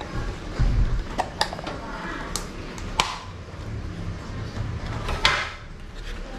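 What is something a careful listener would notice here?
Clear plastic packaging clicks and crinkles as it is pulled out.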